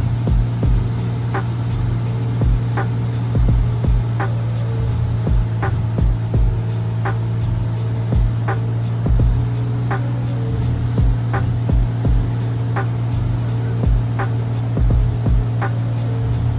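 A small plane's propeller engine drones steadily and loudly close by.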